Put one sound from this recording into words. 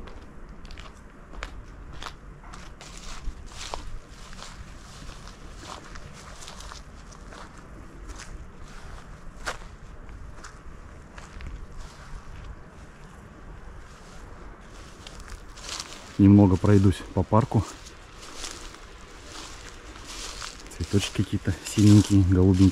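Wind blows softly across an open field.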